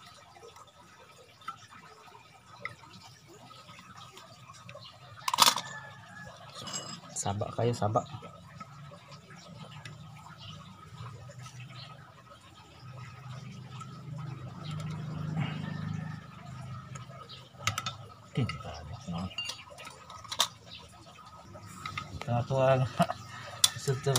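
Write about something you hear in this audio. Metal tools clink and scrape against a metal housing.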